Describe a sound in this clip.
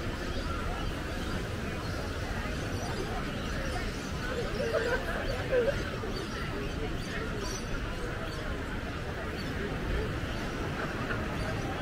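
Distant crowd chatter murmurs outdoors.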